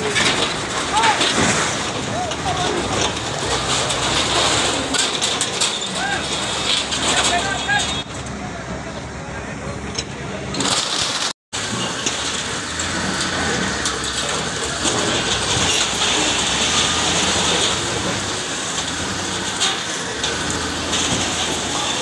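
A heavy machine engine rumbles steadily.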